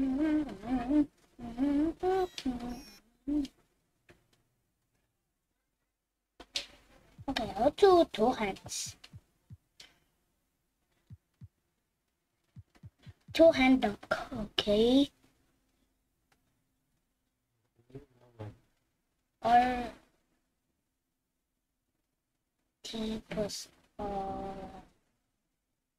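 A young boy talks with animation close to a microphone, in short bursts with pauses.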